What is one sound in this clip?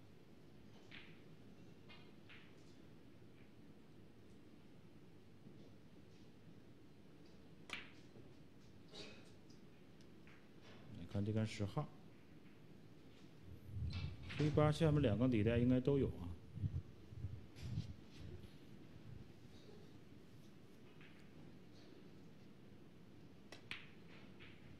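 A cue strikes a snooker ball with a sharp tap.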